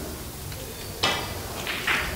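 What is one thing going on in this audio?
A cue strikes a ball with a sharp tap.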